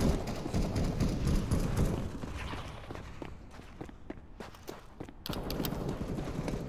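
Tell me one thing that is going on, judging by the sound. Quick footsteps fall on a hard stone floor.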